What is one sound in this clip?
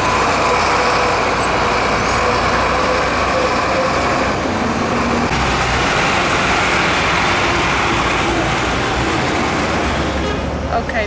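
Traffic hums steadily on a busy road nearby.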